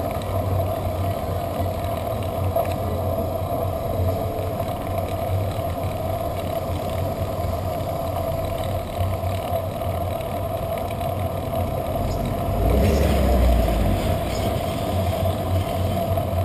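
Wind rushes steadily over the microphone outdoors.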